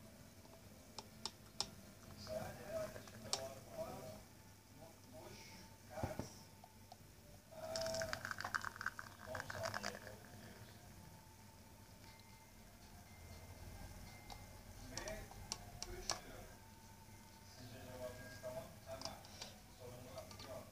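Glass clinks against china.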